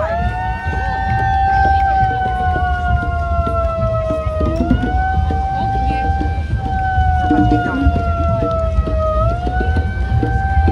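A crowd murmurs outdoors along a street.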